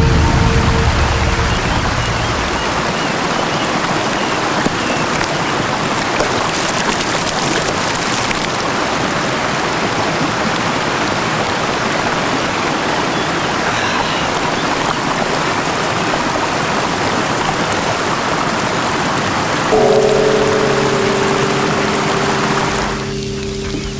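A stream rushes and splashes over rocks.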